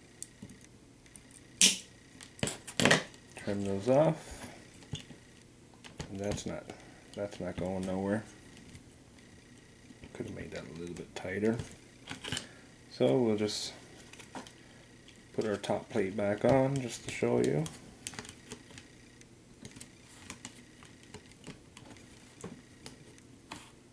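Small plastic parts click and knock together as they are fitted by hand.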